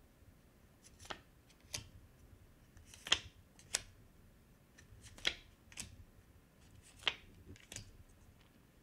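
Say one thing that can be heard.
Cards are shuffled with soft, quick clicks.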